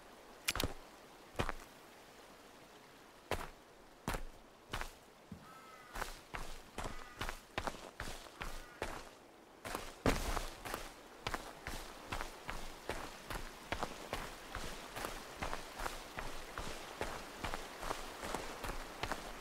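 Footsteps crunch and rustle through grass and dirt, quickening to a run.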